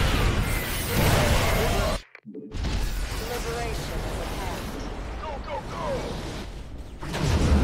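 Gunfire and explosions rattle on in a battle.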